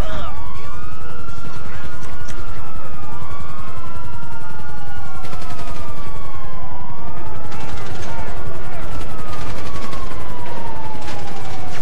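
Footsteps slap quickly on pavement as a man runs.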